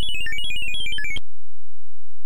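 A short electronic game tune plays in quick beeping notes.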